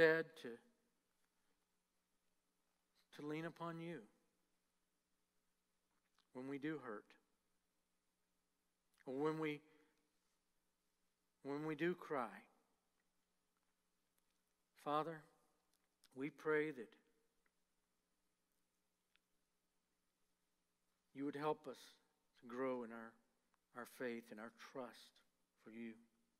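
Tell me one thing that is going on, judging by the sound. An older man speaks calmly into a microphone in short phrases with long pauses.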